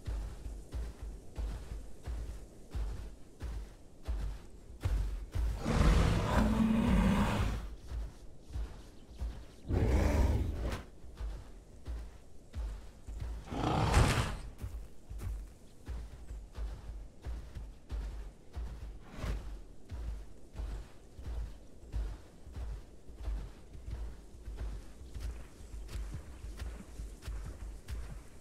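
Heavy footsteps thud steadily on dirt.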